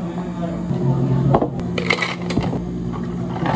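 Plastic cups knock together.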